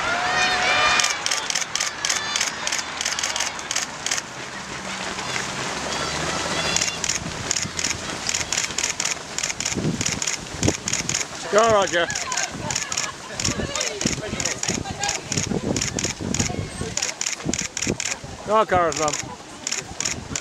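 Many runners' feet pound quickly on a path, close by.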